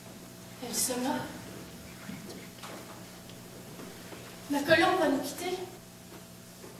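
A young woman speaks loudly in a large hall.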